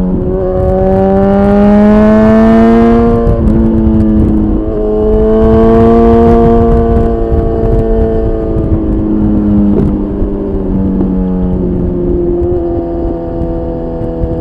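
A motorcycle engine roars loudly, revving up and dropping as gears shift.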